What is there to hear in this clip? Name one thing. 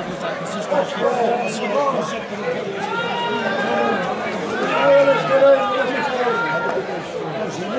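Men shout loudly outdoors.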